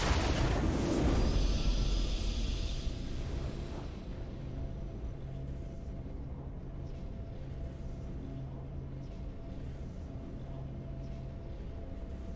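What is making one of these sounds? A triumphant victory fanfare plays softly.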